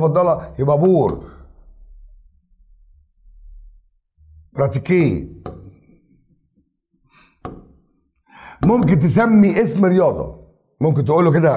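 An elderly man speaks calmly and clearly, close to a microphone, in short phrases with pauses.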